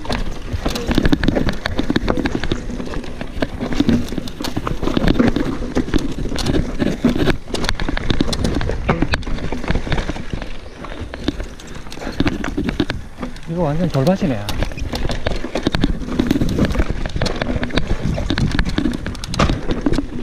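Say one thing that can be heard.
Bicycle tyres rumble and crunch over rocks and dirt.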